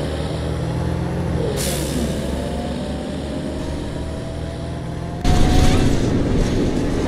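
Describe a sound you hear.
A diesel city bus engine runs.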